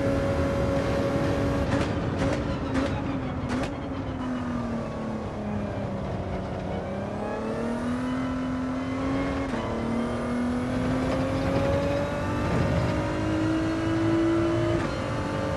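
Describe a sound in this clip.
A racing car engine roars, its pitch dropping and climbing as it shifts and accelerates.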